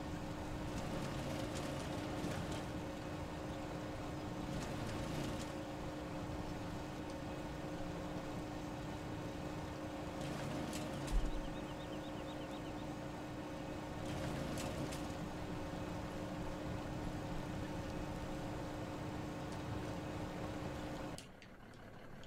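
A machine engine hums steadily.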